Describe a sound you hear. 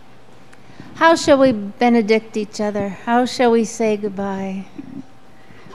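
A woman sings into a microphone in a large echoing room.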